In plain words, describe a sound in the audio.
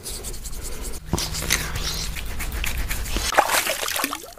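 Hands press and pat wet skin.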